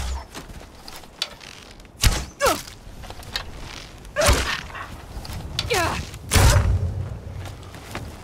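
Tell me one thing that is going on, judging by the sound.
A wolf snarls and growls close by.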